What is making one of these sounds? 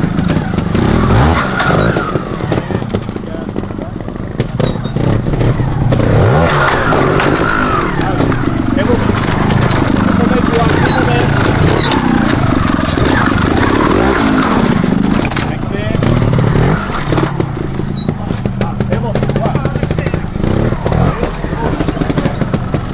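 A motorcycle engine revs in short bursts close by.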